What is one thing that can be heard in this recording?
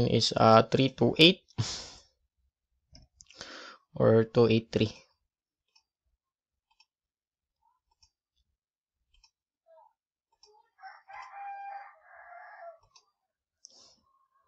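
A computer mouse clicks softly a few times.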